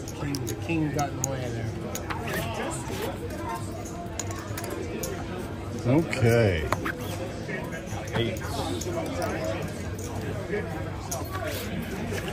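Casino chips click and clatter together.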